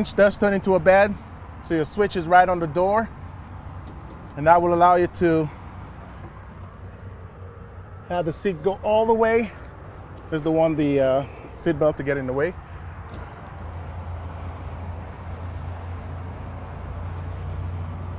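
A truck door opens and closes with a thud.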